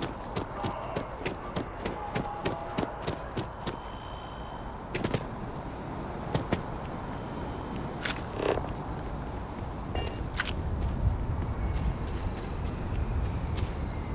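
Footsteps tap steadily on a hard path.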